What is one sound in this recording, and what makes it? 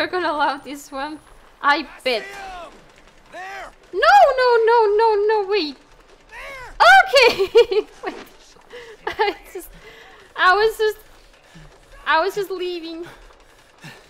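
A young woman talks animatedly and close to a microphone.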